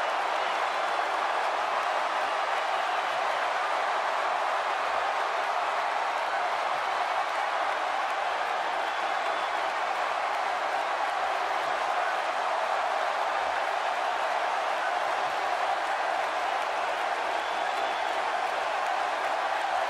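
A crowd cheers loudly and steadily.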